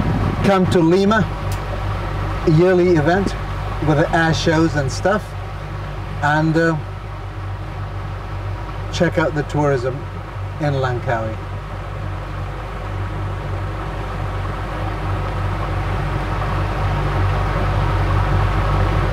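A boat motor hums steadily close by.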